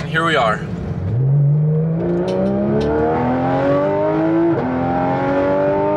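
A car engine revs up and roars as the car speeds up, then shifts gear.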